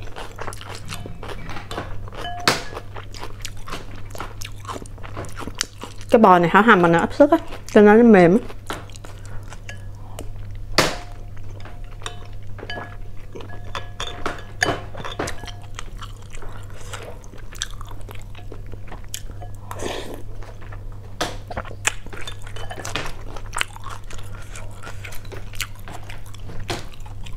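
A woman chews food with wet smacking sounds close by.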